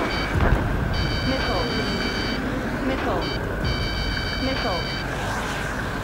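A warning alarm beeps in rapid repeated bursts.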